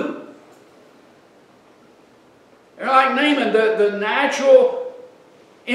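An older man speaks with emphasis into a microphone.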